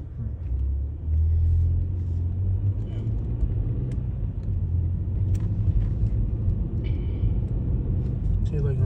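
A car drives along a road, its engine rumbling.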